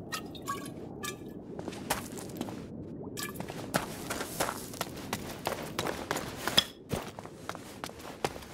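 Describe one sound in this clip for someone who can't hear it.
Footsteps tread on stone and crunch through foliage.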